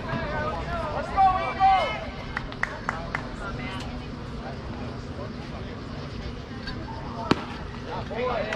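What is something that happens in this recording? Spectators nearby shout and cheer.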